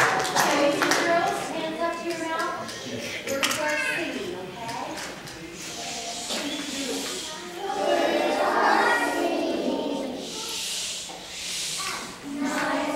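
A choir of young children sings together in a large echoing hall.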